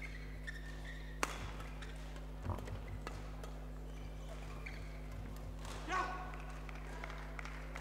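Badminton rackets smack a shuttlecock back and forth.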